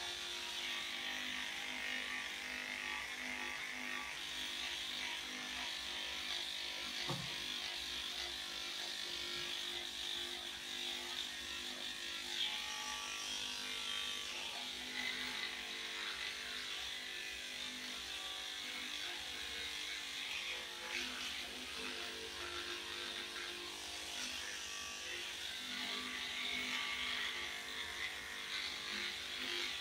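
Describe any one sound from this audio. Electric clippers buzz steadily, close by.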